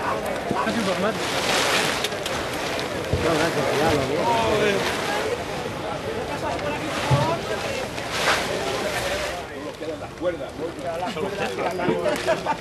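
Plastic tarpaulin rustles and crackles as it is handled.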